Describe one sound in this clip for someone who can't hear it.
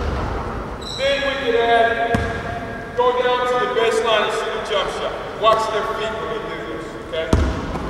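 A man speaks calmly nearby in an echoing hall.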